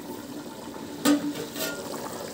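A metal lid clanks as it is lifted off a pot.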